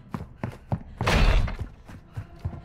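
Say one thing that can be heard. A heavy door swings open with a thud.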